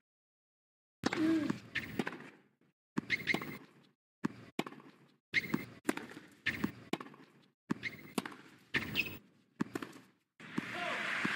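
A tennis ball is struck back and forth with sharp pops.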